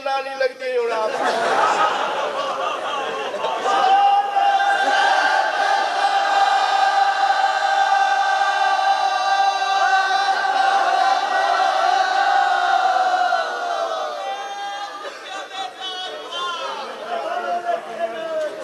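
A large crowd of men chants together in long drawn-out voices.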